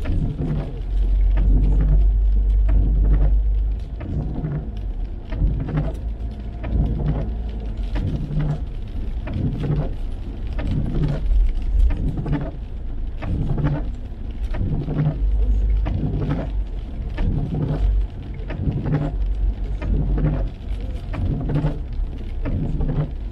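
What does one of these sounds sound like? Windscreen wipers swish back and forth at a steady pace.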